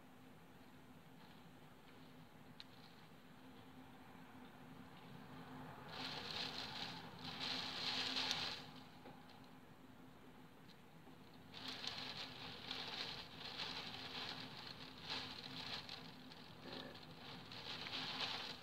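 Rain patters steadily on a window, swelling into heavy gusty downpours.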